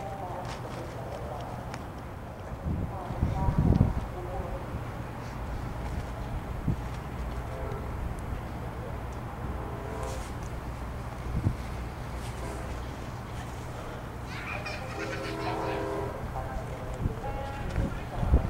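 A diesel train rumbles steadily as it slowly approaches.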